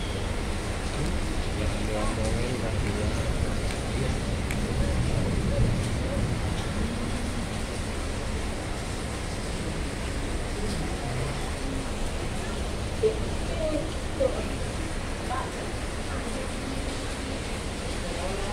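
Motorcycle engines idle and rumble nearby.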